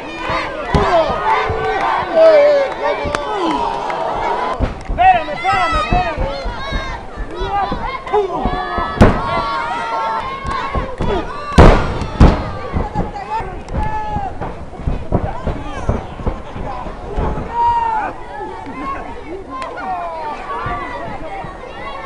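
A crowd outdoors cheers and shouts throughout.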